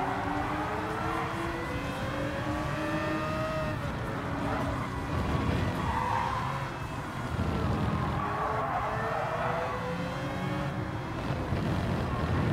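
A racing car engine roars, its pitch rising and falling as it shifts gears.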